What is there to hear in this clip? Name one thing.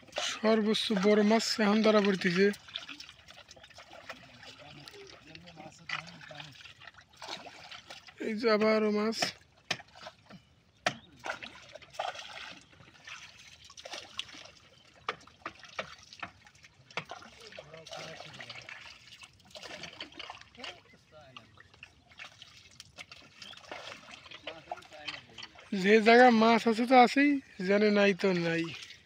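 A pole splashes and knocks in shallow water.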